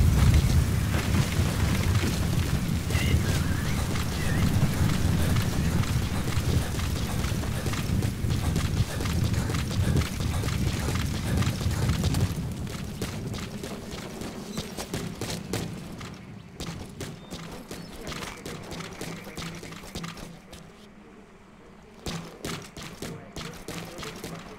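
Boots run on sand.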